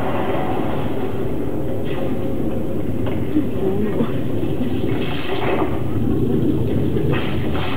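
A film soundtrack plays loudly over loudspeakers in a large hall.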